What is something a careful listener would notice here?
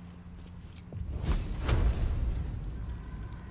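A magical spell bursts with a rushing whoosh.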